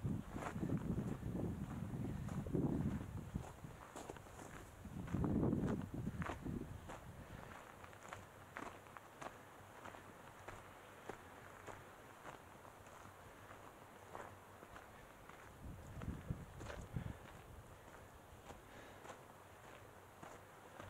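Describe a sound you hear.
Footsteps crunch on a dry dirt trail.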